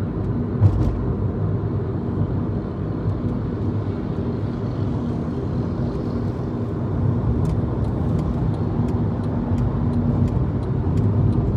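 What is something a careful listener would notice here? Motorcycles buzz ahead on the road.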